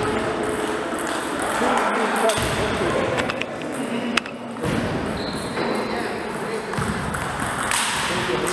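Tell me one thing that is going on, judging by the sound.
A ping-pong ball clicks sharply off paddles and the table, echoing in a large hall.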